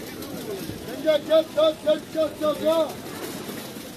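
A man calls out loudly and rhythmically nearby.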